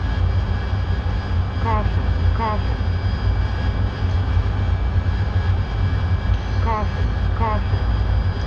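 A jet engine roars steadily close by.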